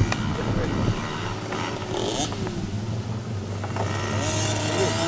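Small dirt bike engines buzz and whine outdoors.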